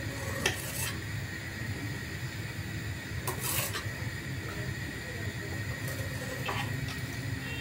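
A spoon clinks and scrapes against a small metal pot.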